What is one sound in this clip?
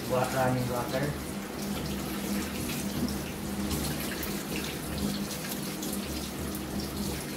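Wet hands rub together under running water.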